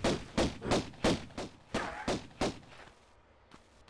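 Pistol shots ring out in quick succession.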